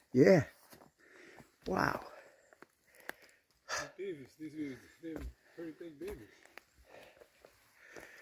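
Footsteps crunch on dry twigs and forest floor.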